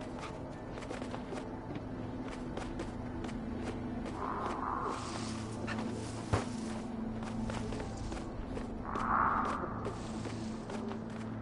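Light footsteps patter quickly across soft ground.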